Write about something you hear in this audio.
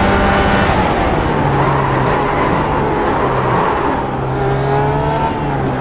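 A racing car engine roars and shifts up and down through gears.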